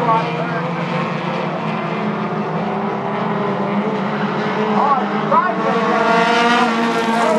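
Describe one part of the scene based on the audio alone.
Racing car engines roar loudly as the cars speed past.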